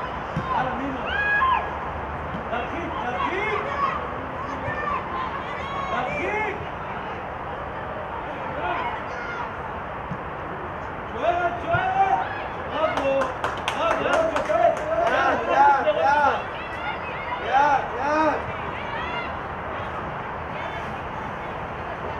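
Young women shout and call to each other across an open outdoor field.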